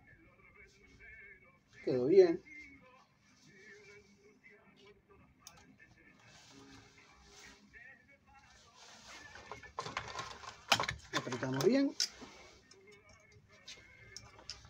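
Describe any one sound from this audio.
Small metal parts click and rattle as a sewing machine is worked on by hand.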